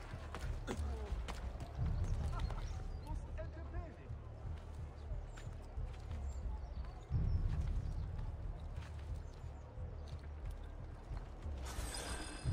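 Hands and feet scrape and thud against stone while climbing.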